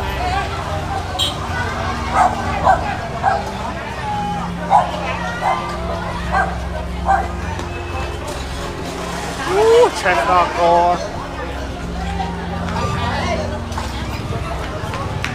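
A crowd of men and women talks and calls out excitedly nearby.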